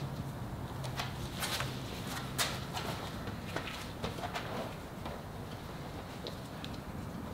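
A stiff sheet crinkles and rustles as it is handled.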